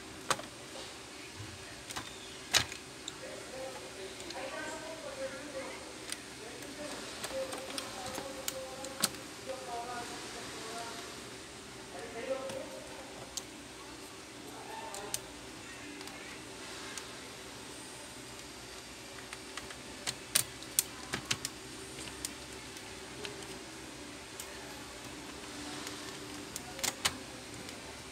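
Plastic parts click and snap as fingers work them into place.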